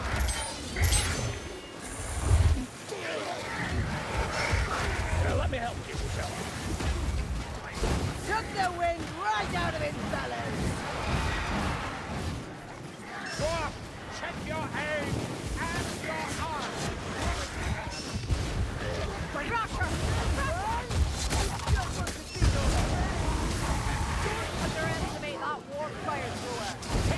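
Blades swing and strike with sharp, repeated hits.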